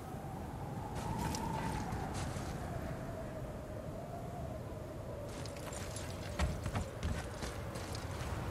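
Footsteps crunch on snow.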